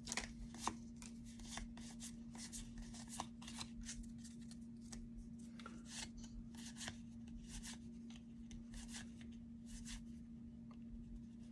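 Trading cards slide and flick softly against each other as they are shuffled by hand.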